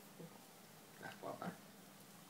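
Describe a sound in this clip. A man murmurs softly close by.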